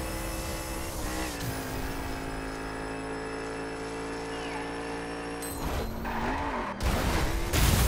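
A racing car engine roars at high speed, shifting gears.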